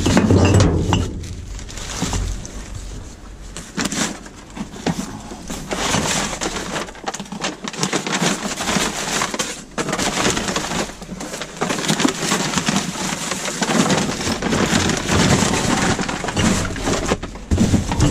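Paper and plastic rustle and crinkle as a gloved hand rummages through rubbish.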